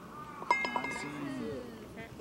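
A man calls out nearby outdoors.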